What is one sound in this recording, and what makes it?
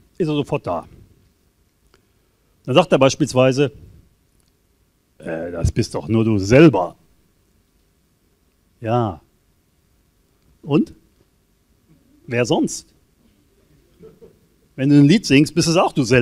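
An older man speaks calmly into a microphone, with pauses between phrases.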